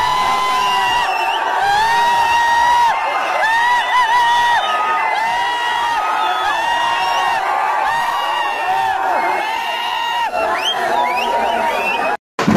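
A large crowd sings a chant together loudly outdoors.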